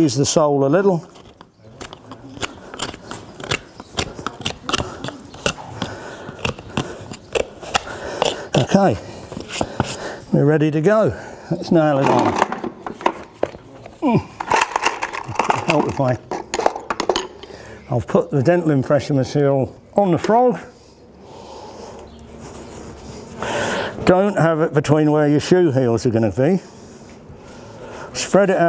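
Metal tools clink and tap.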